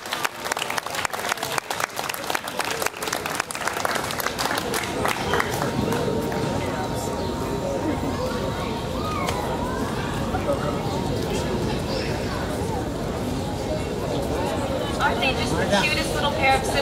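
A keyboard plays music.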